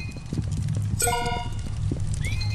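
A bright chime rings out as an item is picked up.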